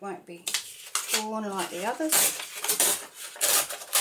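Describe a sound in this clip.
Paper tears slowly along a metal ruler.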